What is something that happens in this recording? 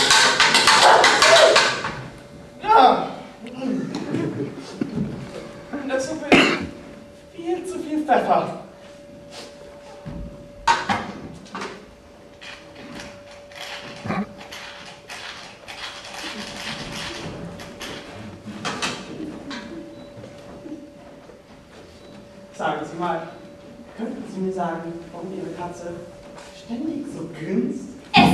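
Young women speak their lines with animation on a stage, heard from an echoing hall.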